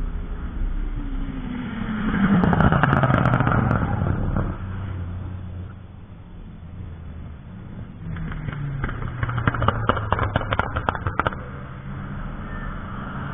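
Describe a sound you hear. A car engine roars past at speed, its pitch dropping as it goes.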